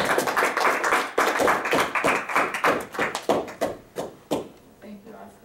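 A young man speaks steadily in an echoing room.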